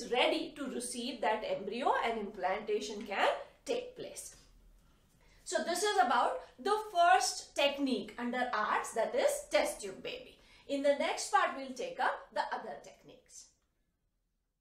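A middle-aged woman speaks clearly and steadily close to a microphone, explaining.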